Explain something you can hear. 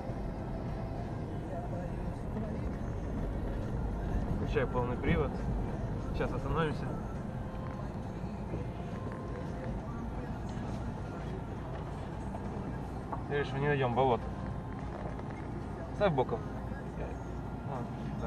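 A car engine rumbles steadily from inside the cabin.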